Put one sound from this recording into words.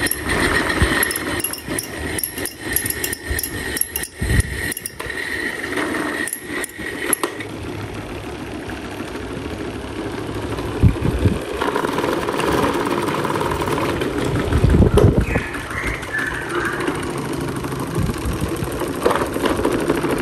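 Several electric fans whir and hum steadily.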